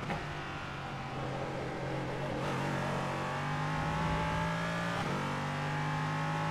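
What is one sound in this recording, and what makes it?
A race car engine roars steadily, its pitch climbing slowly.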